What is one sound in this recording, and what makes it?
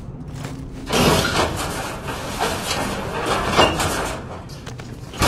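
A heavy stone block grinds and scrapes as it is lifted.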